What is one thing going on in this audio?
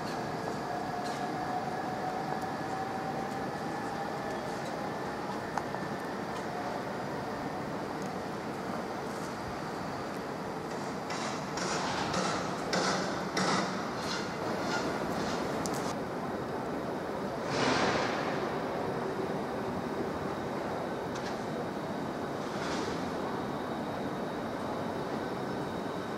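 A train rumbles as it approaches through an echoing station.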